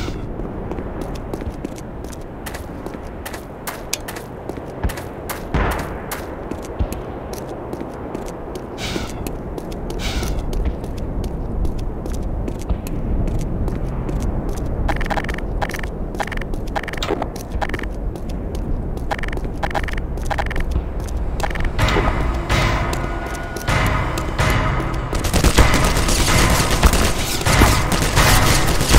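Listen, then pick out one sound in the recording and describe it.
Footsteps thud steadily on pavement.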